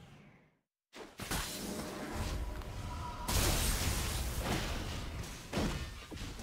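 Game battle effects clash and burst with spell sounds and impacts.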